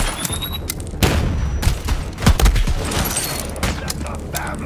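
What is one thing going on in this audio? Gunshots fire in sharp bursts with a booming echo.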